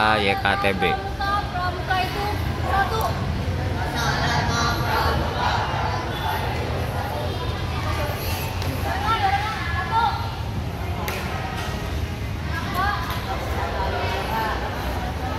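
Many boys chatter and murmur together outdoors.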